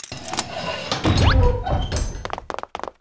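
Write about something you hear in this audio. A heavy door rumbles open.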